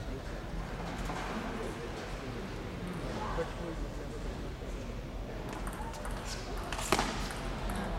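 A ping-pong ball clicks back and forth off paddles and a table in a large echoing hall.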